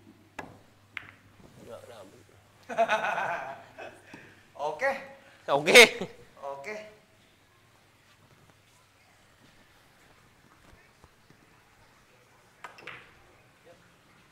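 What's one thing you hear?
Billiard balls knock together.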